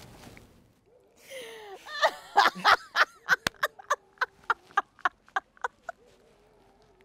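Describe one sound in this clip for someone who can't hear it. A woman laughs loudly and happily close by.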